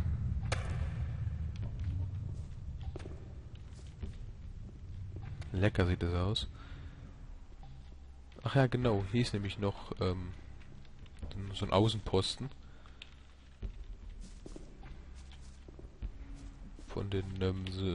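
Footsteps scrape on rocky ground.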